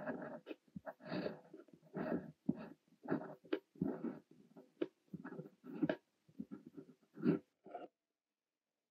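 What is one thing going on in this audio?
A fountain pen scratches across paper close by.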